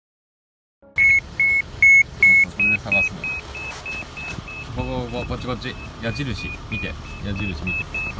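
An avalanche beacon beeps in a steady, repeating rhythm.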